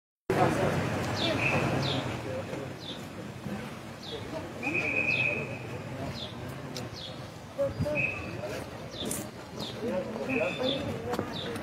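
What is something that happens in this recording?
Several men talk at once in an outdoor crowd.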